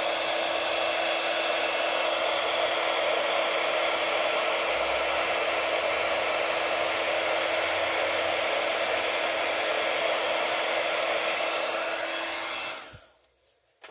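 A heat gun blows with a loud, steady whoosh, then cuts off.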